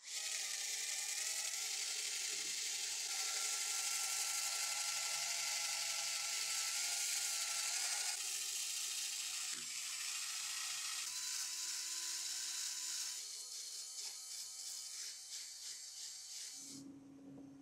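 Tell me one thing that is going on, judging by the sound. A cordless drill whirs.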